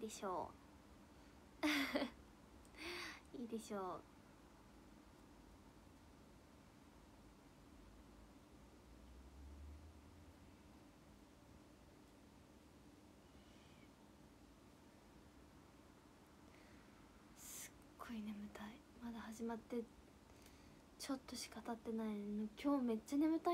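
A young woman speaks casually and close to a microphone, with pauses.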